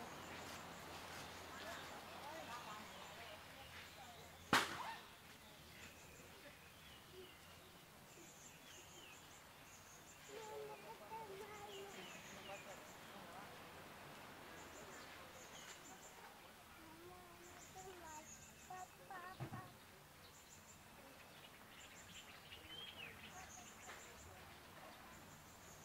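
Men and women chat casually nearby outdoors.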